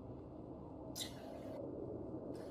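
A sharp blast bursts out once.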